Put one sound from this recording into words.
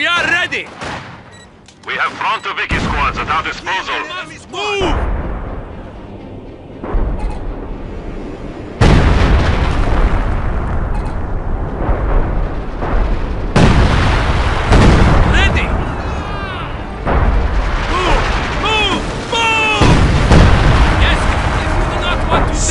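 Explosions boom in a battle.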